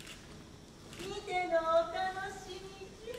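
A young woman speaks with feeling on a stage, heard through a microphone in a large hall.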